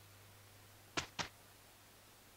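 A game menu gives two soft clicks.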